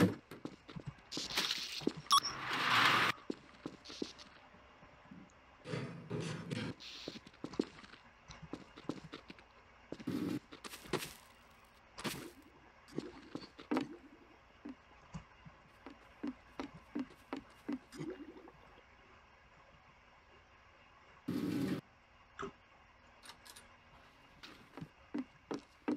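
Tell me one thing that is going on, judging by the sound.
Footsteps tap on hard floors.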